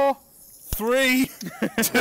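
A torch lighter flame hisses.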